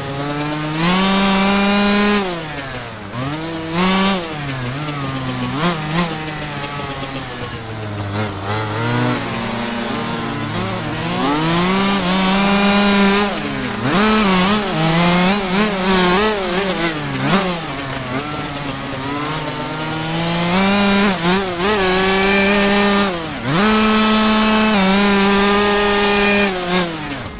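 A dirt bike engine revs up and down, its pitch rising and falling as the gears shift.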